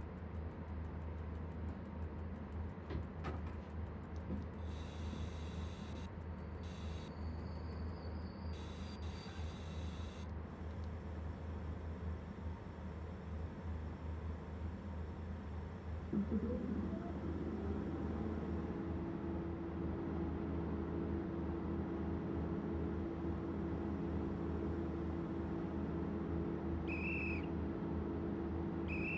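A locomotive engine hums steadily in the cab.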